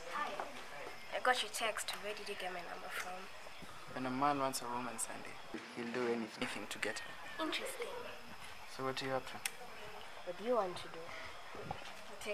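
A young woman talks close by in a calm, playful tone.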